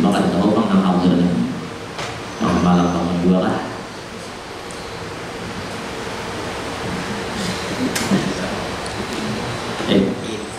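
A man speaks calmly into a microphone, heard over a loudspeaker in an echoing room.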